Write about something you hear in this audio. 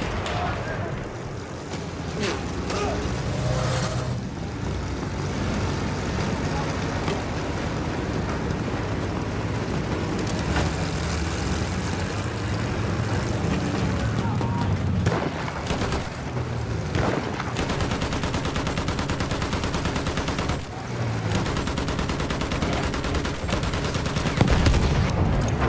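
A First World War heavy tank's engine rumbles as it drives.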